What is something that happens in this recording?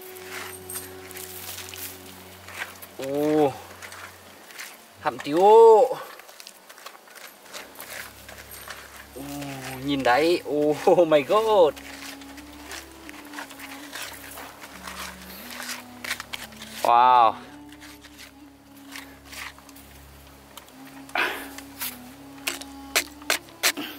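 A hand scrapes and brushes dry soil.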